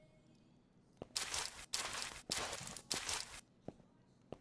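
A mop scrubs across a floor in short strokes.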